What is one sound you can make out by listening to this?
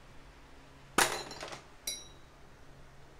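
A glass shatters and its pieces clatter.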